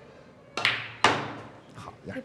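Billiard balls knock together with a loud clack.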